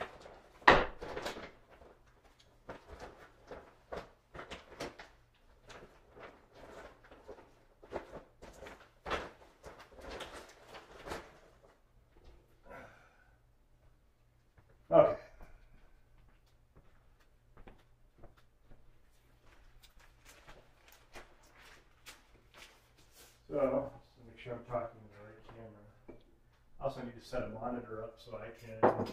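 Paper rustles and taps as sheets are handled.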